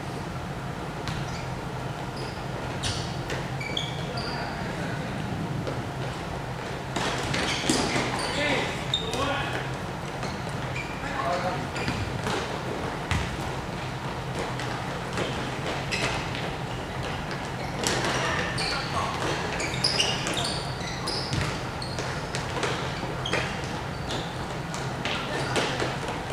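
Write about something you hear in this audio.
Shoes squeak sharply on the court.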